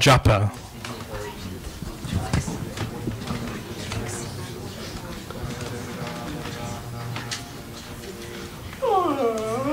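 A man reads out through a microphone.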